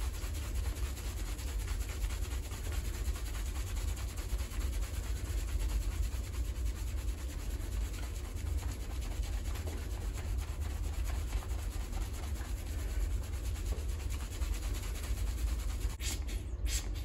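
Hands scrub a soapy scalp with a soft, wet squelching.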